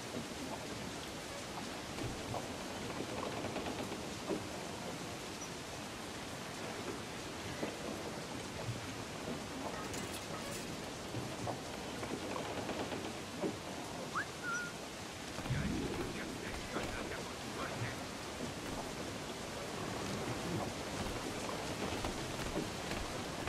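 Footsteps thud softly on a wooden deck.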